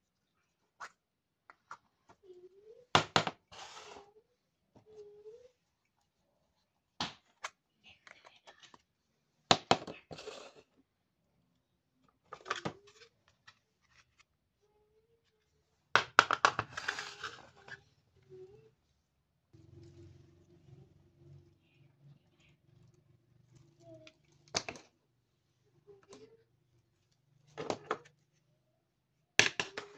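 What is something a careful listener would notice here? Plastic toys clack as they are set down on a hard surface.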